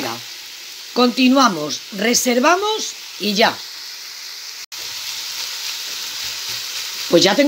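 Minced meat sizzles steadily in a hot pan.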